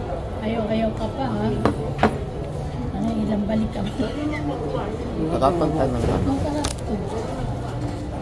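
A second young man talks casually nearby.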